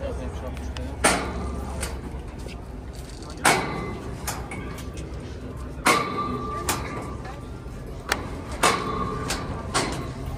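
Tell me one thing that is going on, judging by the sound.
A metal turnstile clanks and rattles as it turns.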